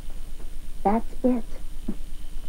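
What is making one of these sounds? A woman speaks briefly and brightly from close by.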